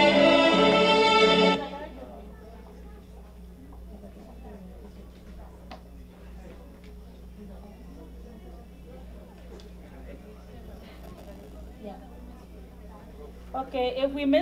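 A woman speaks into a microphone over loudspeakers in a large room.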